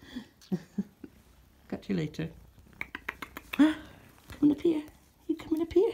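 A kitten meows repeatedly up close.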